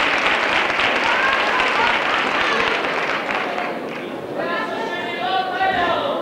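A group of young performers sings together in a large hall.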